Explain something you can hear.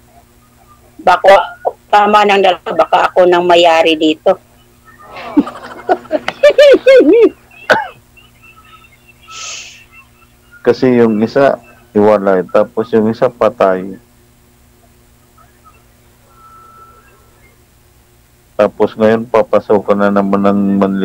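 A middle-aged woman talks and laughs over an online call.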